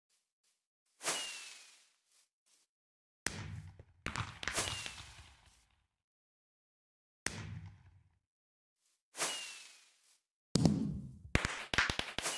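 Fireworks burst with sharp bangs.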